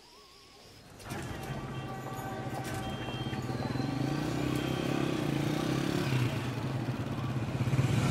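A motorcycle engine rumbles nearby.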